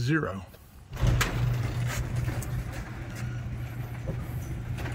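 A garage door opener motor hums as a door rolls shut.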